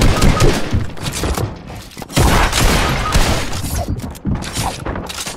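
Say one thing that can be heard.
Video game building pieces clatter and snap into place in quick bursts.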